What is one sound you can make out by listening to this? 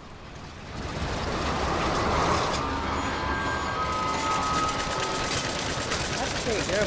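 A metal hook grinds and screeches along a rail at speed.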